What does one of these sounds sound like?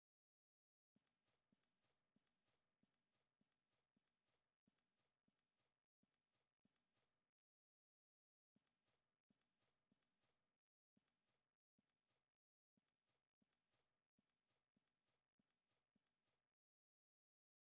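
Footsteps thud on a wooden floor at a steady walking pace.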